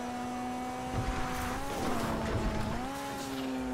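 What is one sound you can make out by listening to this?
A car crashes and tumbles over rough ground with loud thuds.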